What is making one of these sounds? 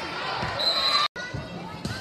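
A player serves a volleyball with a slap of the hand.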